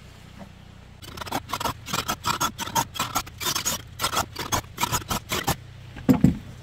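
A cordless drill bores into wood in short bursts.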